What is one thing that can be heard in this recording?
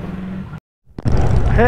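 A motorcycle engine roars loudly while riding.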